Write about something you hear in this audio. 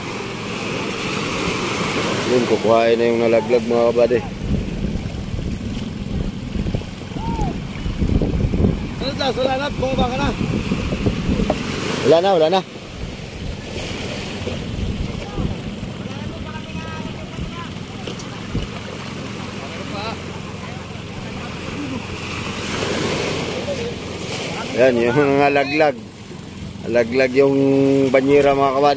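Small waves wash and splash onto the shore.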